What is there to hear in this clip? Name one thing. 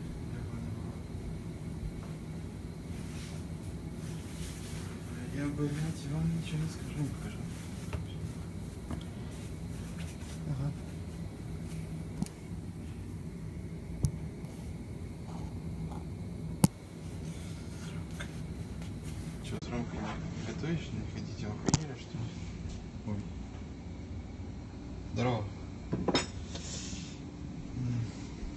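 A gas burner hisses softly and steadily.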